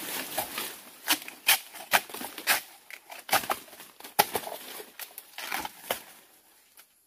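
A machete chops into a bamboo shoot with sharp knocks.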